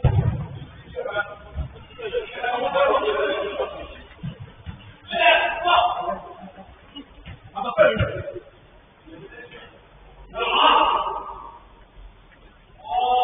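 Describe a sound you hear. Men shout and call out to each other in a large echoing hall.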